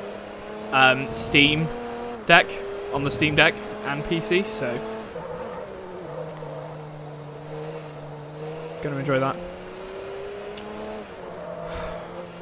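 A racing car engine drones steadily, dropping and rising in pitch as it shifts gears.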